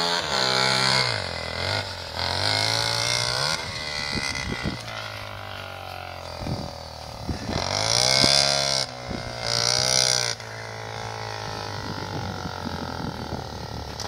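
A quad bike engine revs up and down nearby, outdoors.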